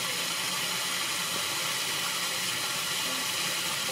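Water fizzes and bubbles steadily in a drain.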